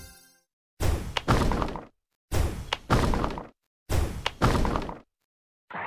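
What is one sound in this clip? Bubbles burst with short crackling game sound effects, over and over.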